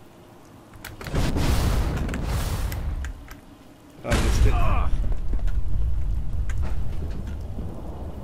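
A loud rush of water splashes up close.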